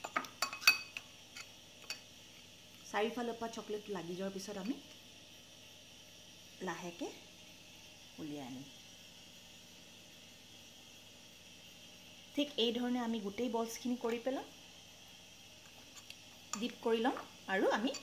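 A metal spoon scrapes and clinks against a glass bowl.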